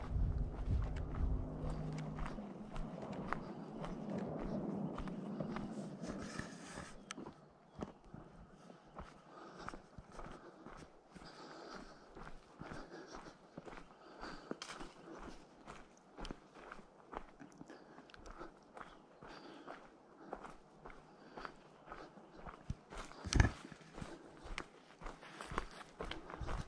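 Footsteps crunch on dry leaves and a dirt path.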